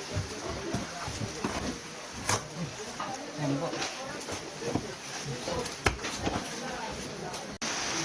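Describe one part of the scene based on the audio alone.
Hands scrape and dig through loose soil and rubble.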